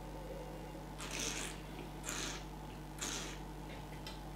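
A man slurps wine noisily.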